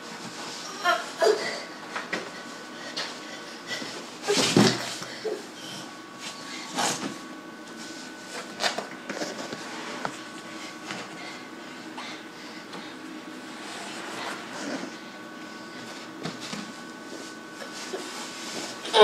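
A heavy bag thumps and drags on the floor.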